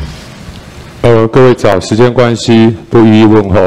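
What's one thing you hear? A middle-aged man speaks loudly and firmly into a microphone.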